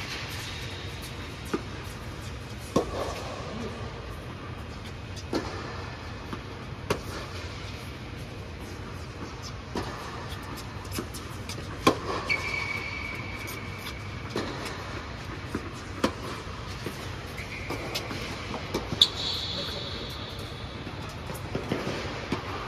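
A low steady hum of air blowers fills a large hall.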